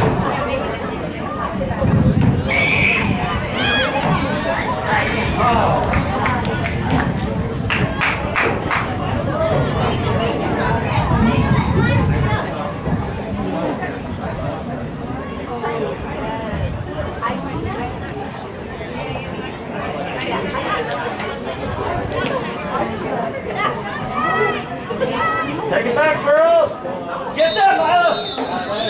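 Spectators and players shout and call out across an open outdoor field.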